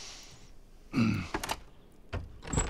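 A door lock clicks.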